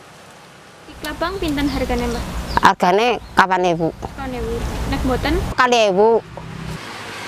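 An elderly woman speaks calmly and close by.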